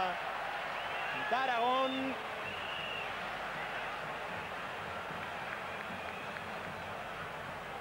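A large stadium crowd murmurs and cheers in the open air.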